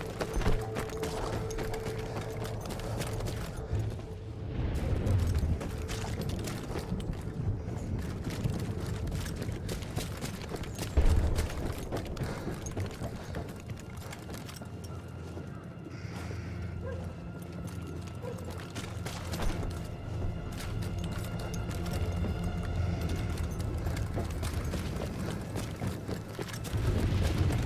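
Footsteps squelch and crunch over wet ground.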